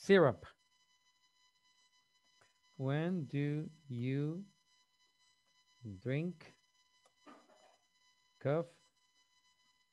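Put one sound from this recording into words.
A man speaks slowly and clearly over an online call, word by word.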